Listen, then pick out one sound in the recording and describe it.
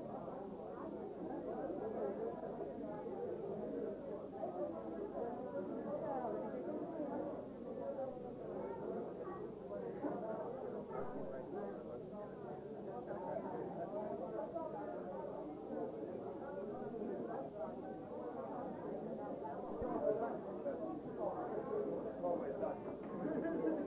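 A crowd of men and women chatter and talk over one another.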